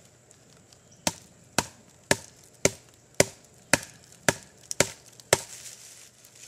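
A wooden stick knocks hard and fast on a wooden stake.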